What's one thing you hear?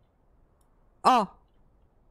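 A young woman lets out a short, high exclamation close to a microphone.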